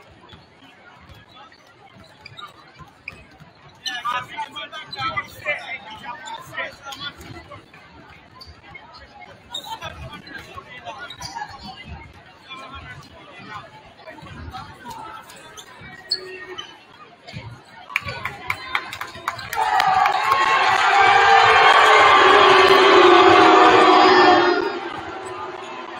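A crowd of spectators murmurs and chatters.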